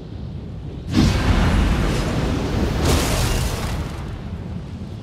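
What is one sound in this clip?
A video game's magic blast bursts with a loud whoosh and crash.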